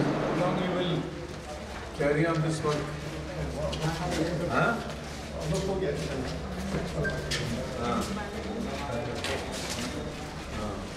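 Men talk nearby in an echoing hallway.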